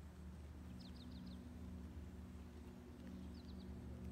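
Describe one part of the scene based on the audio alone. A golf driver strikes a teed golf ball.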